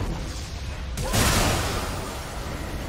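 A loud magical explosion bursts.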